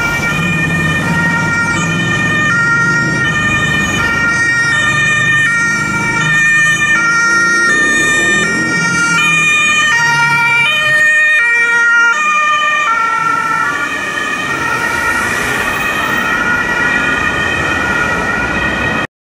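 An ambulance siren blares loudly nearby, switching rapidly between pitches.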